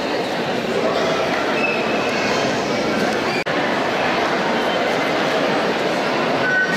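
A folk band plays a lively tune on flutes in a large echoing hall.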